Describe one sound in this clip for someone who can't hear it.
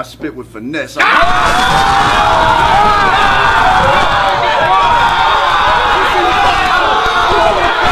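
A crowd cheers, shouts and laughs loudly in a room.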